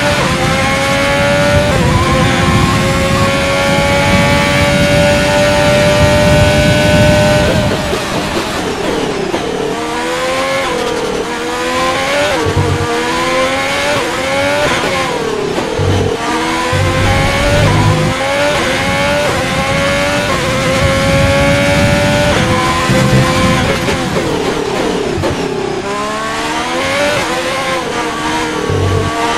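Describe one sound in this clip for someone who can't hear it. A racing car engine screams at high revs, rising through the gears and dropping sharply under braking.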